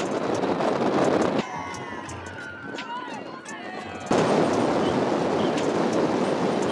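Wind rushes loudly as racing bicycles speed along a road.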